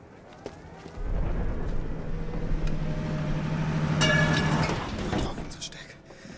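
A tank engine rumbles loudly.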